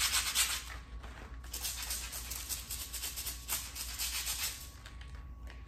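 A brush scrubs briskly against a tile floor.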